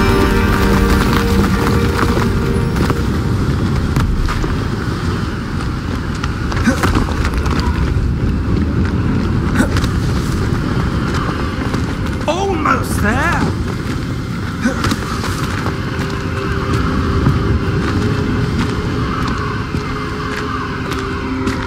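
Waves crash and wash against rocks below.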